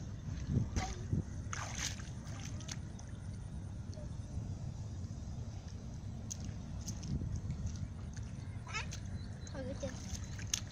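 Bare feet splash and slosh through shallow water.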